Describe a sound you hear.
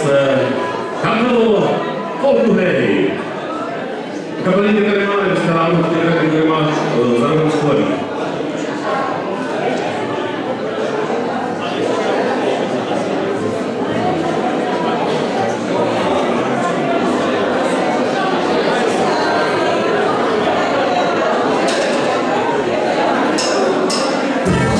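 A band plays lively music in a large hall.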